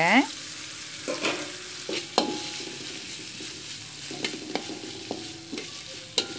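A metal spatula scrapes and clinks against a wok.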